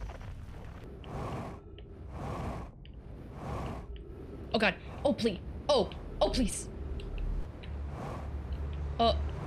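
A jetpack thruster whooshes in bursts.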